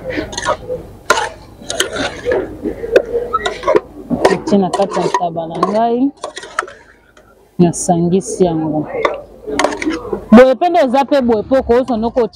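A metal spoon scrapes and stirs a thick stew in a pot.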